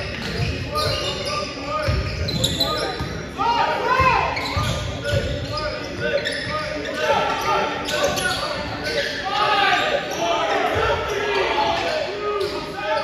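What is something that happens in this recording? A basketball bounces with dull thumps.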